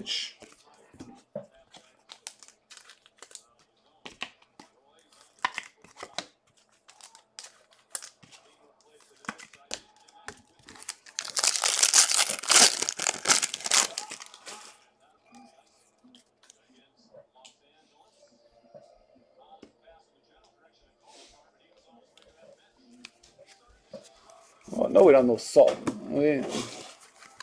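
Trading cards rustle and flick against each other.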